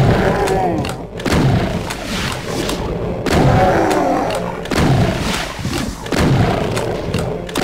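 Monsters growl and roar.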